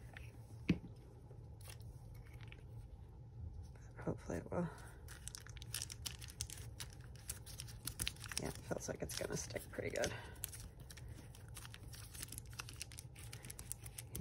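Paper crinkles and rustles as hands press it down.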